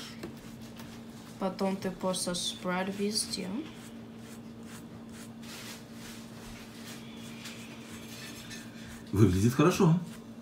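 A spoon scrapes softly as it spreads a paste.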